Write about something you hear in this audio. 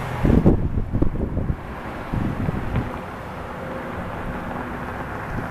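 A heavy truck engine rumbles along the road, coming closer.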